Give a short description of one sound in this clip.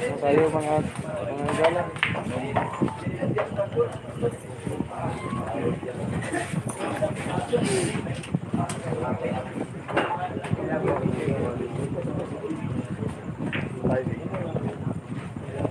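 A crowd of men and women chatters nearby throughout.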